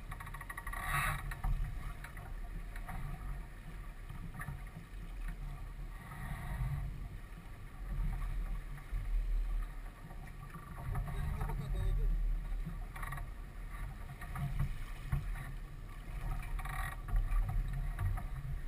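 Water splashes against a sailboat's hull.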